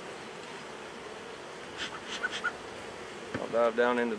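A bee smoker's bellows puff short bursts of air.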